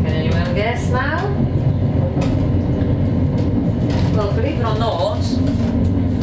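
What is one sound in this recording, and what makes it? A train rumbles steadily as it rolls along.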